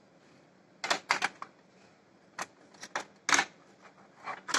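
A plastic connector clicks into place.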